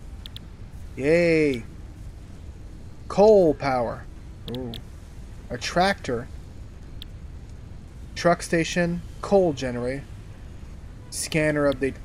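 A man talks calmly and expressively into a close microphone.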